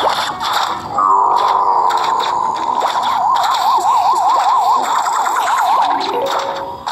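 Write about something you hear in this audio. A game's warning tone sounds steadily, then warbles up and down.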